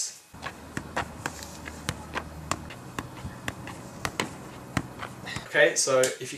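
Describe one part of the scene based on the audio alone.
A football thuds repeatedly against a foot as it is juggled.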